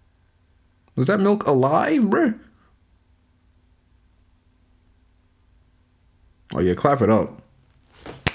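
A young man speaks close to a microphone, with animation, in short bursts.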